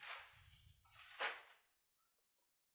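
Thread rasps as it is pulled tight through a shoe sole.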